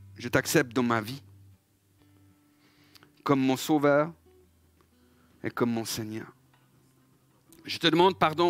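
A middle-aged man speaks calmly through a microphone, in short phrases with pauses.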